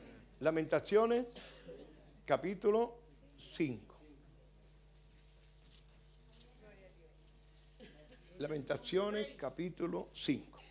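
A middle-aged man speaks slowly and with emphasis into a microphone, in a room with some echo.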